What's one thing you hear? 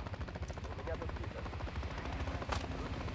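A helicopter's rotor thumps with a low, steady beat.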